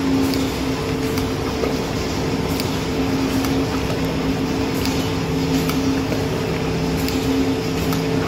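Liquid pours and splashes into a bucket.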